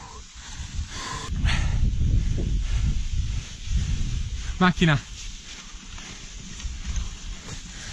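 Wind rushes past a fast-moving rider outdoors.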